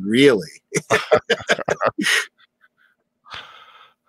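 A man laughs heartily through a microphone.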